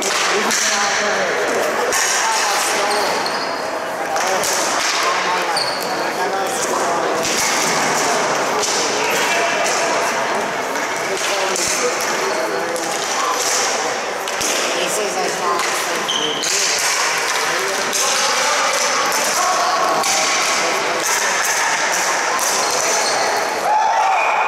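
Young players shout and call out across the hall.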